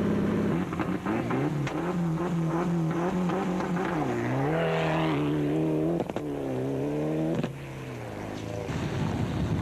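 A car engine revs hard again and again and roars away.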